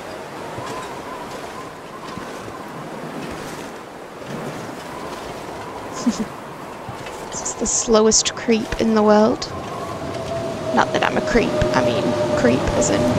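Wind howls and gusts in a heavy snowstorm.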